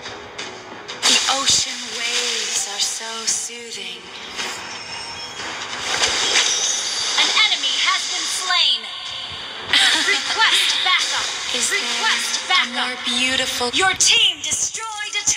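Magic spells whoosh and crackle as fighters clash.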